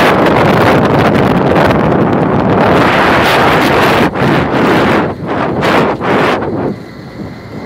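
Wind buffets loudly during a motorcycle ride.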